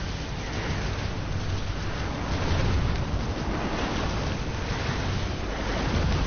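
Fire roars and crackles.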